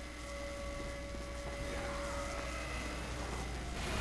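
A crackling energy beam hums steadily.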